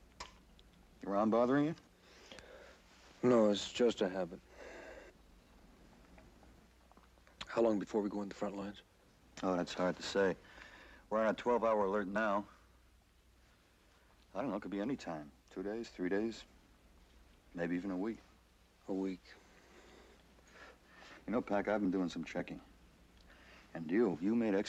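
A young man speaks quietly and earnestly, close by.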